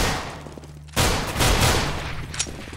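A pistol fires a shot.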